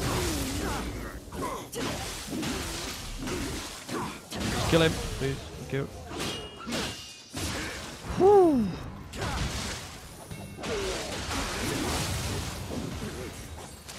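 Swords clash and slash.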